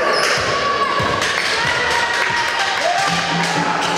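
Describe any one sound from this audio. A basketball bounces on the court as it is dribbled.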